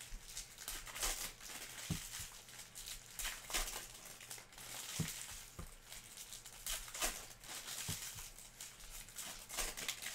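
A foil wrapper crinkles and tears in someone's hands.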